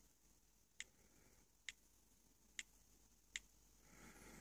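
Phone keyboard clicks tick softly as keys are tapped.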